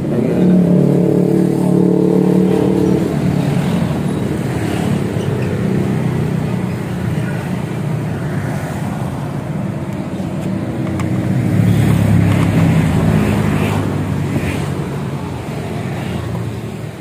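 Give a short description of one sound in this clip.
A single-cylinder four-stroke scooter engine runs through an aftermarket exhaust.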